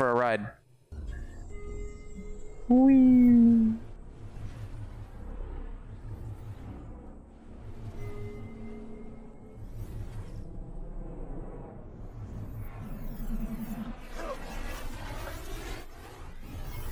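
Sci-fi energy whooshes and hums steadily.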